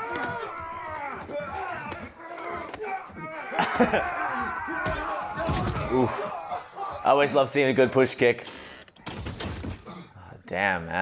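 Blows and scuffling thump during a fight.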